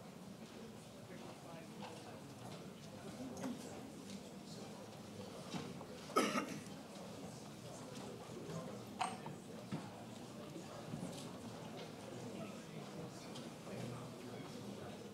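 An audience murmurs quietly in a large room.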